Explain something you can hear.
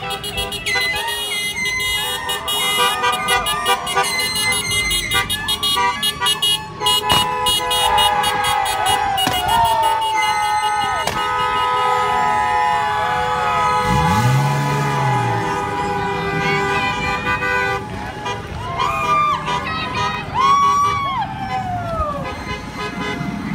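Car horns honk repeatedly as vehicles drive slowly past.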